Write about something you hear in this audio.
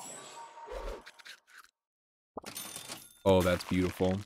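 Short playful game sound effects chime and pop.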